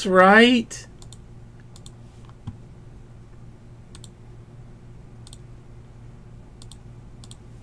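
Keys click softly on a computer keyboard.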